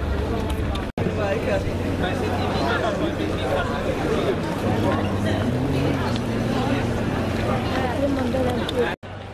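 A crowd of adults murmurs and chatters outdoors.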